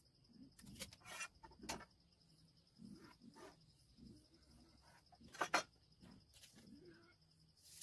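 Wooden boards knock and clatter as they are handled.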